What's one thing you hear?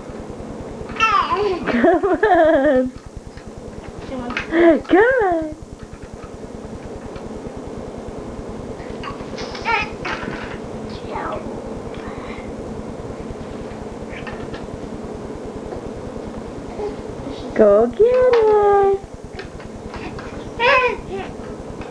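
A baby squeals and babbles close by.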